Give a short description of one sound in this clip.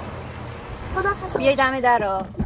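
A person speaks inside a car.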